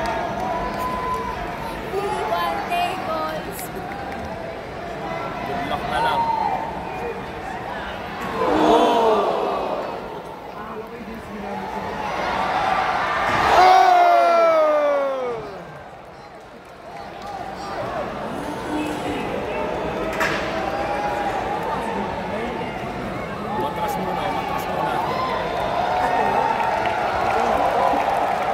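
A large crowd cheers and shouts in a large echoing hall.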